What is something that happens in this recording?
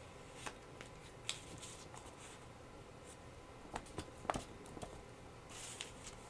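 Paper rustles as it is lifted and moved.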